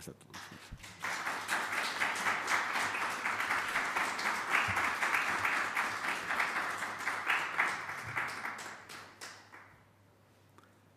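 An audience applauds.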